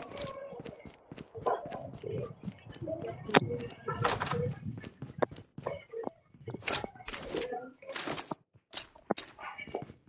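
Footsteps fall on a concrete floor.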